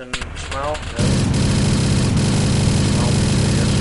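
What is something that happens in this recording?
A vehicle engine roars steadily.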